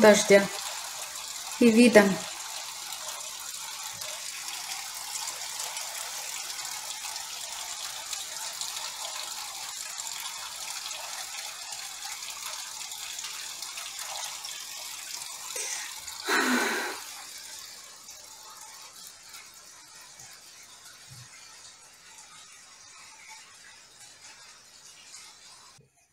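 Heavy rain pours down steadily outdoors, then sounds muffled and quieter.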